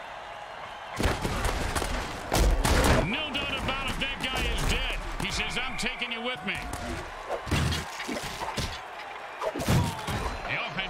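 Heavy bodies crash together in a tackle.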